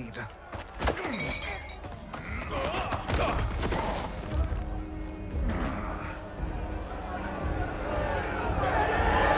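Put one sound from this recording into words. An angry crowd shouts and jeers.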